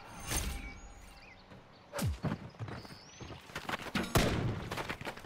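A sniper rifle fires with a loud, sharp crack.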